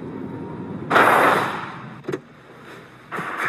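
A car door bangs open.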